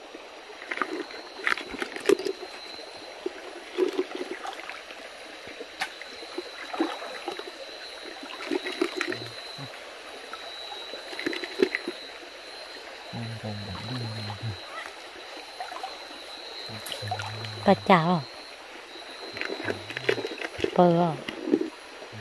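Water splashes as a man wades through a shallow stream.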